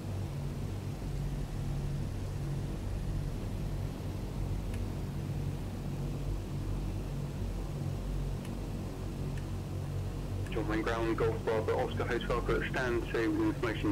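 An aircraft engine drones low and steadily.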